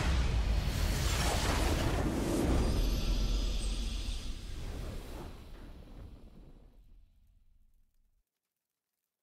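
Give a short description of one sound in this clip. A game's victory fanfare booms loudly and fades away.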